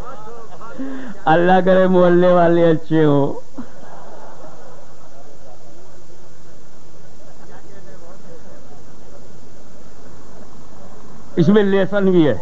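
An elderly man speaks with animation into a microphone, heard through a loudspeaker.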